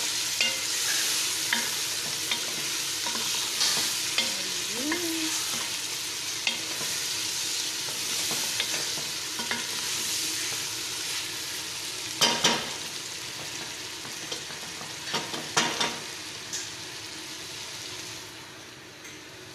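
Chicken and vegetables sizzle in a pot.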